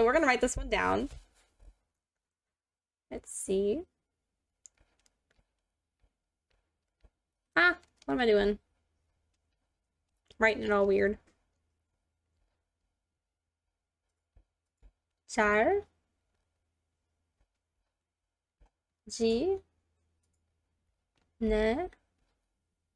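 A woman speaks slowly and clearly into a close microphone, in short phrases with pauses.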